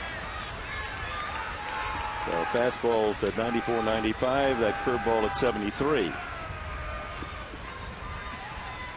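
A stadium crowd murmurs in the background.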